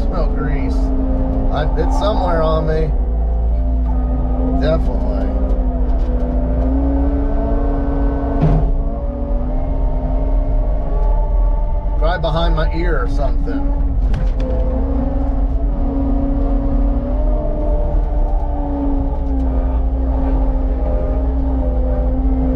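A diesel engine rumbles steadily close by.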